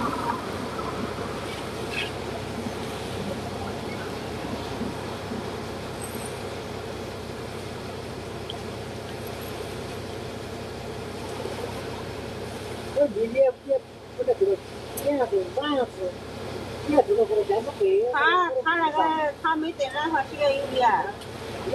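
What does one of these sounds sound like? Scissors snip through hair close by.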